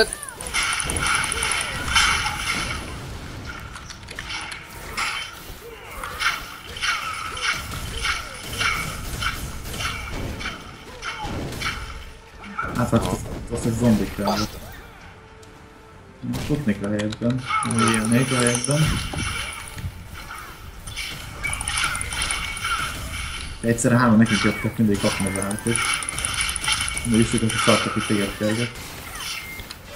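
Swords clash and magic blasts burst in quick, repeated hits.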